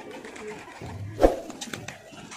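A pigeon flaps its wings.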